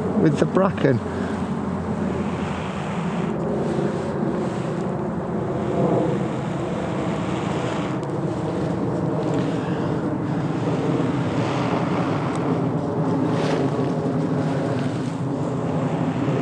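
A man blows steadily into a bundle of smouldering tinder.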